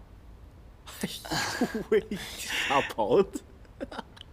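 Another young man speaks softly with amusement.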